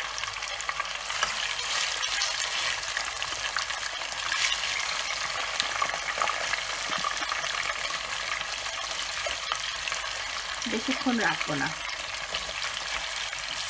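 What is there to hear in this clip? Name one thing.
Metal tongs clink against a pot.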